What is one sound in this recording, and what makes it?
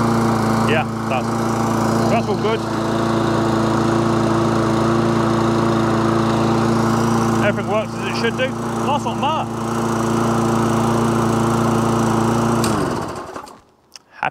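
A petrol lawn mower engine runs with a steady drone, then winds down and stops.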